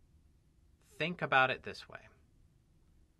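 A man speaks calmly and closely into a microphone.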